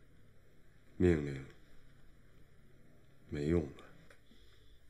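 A young man speaks briefly and firmly, close by.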